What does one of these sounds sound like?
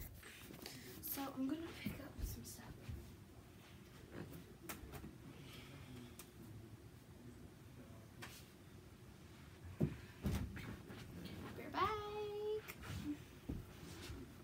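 Bare feet thump on the floor.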